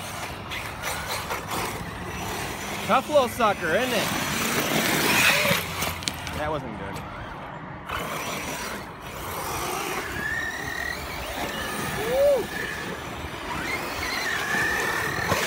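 Small tyres spray dirt and gravel.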